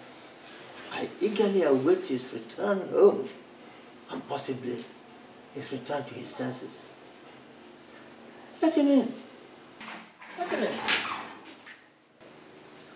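An elderly man speaks with animation, close by.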